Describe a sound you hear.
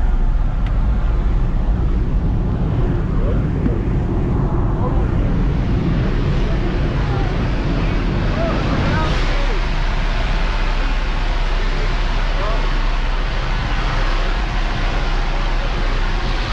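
An elderly man speaks briefly, close by, over the engine noise.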